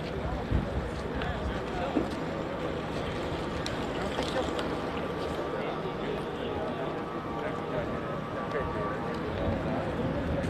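A crowd of men talks and shouts outdoors.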